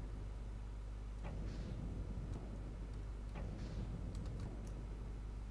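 A spaceship engine hums low and steadily.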